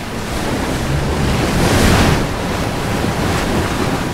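A sail flaps and snaps in the wind.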